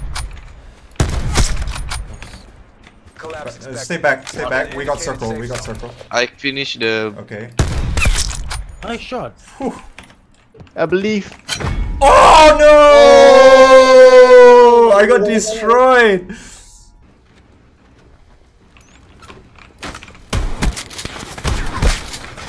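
Gunshots crack in sharp bursts.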